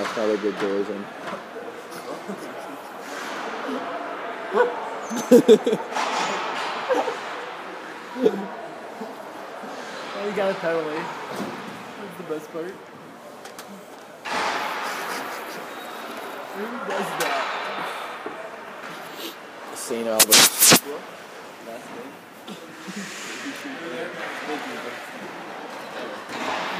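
Voices of a crowd echo through a large rink hall.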